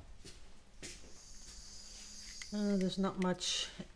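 A handheld gas torch hisses briefly.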